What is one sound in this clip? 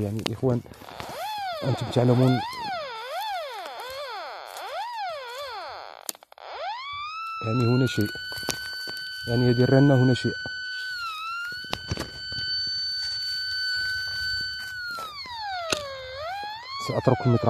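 A metal detector sweeps over the ground, its tone warbling up and down.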